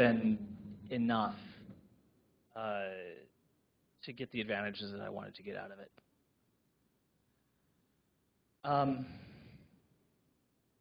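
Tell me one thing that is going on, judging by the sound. A man speaks calmly through a microphone, with pauses.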